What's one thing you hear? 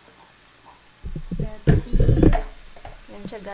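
A frying pan is set down with a thump.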